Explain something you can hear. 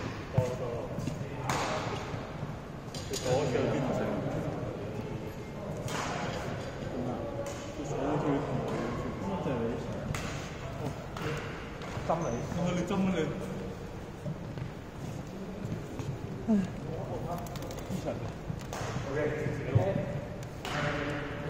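Shuttlecocks are struck with badminton rackets in a large echoing hall.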